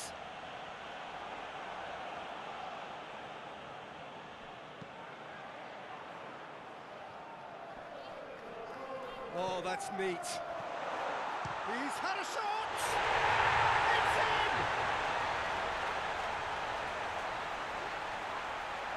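A large crowd murmurs and chants steadily in a stadium.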